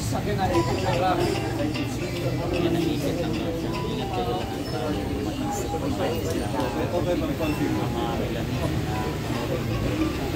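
A man talks with elderly women close by.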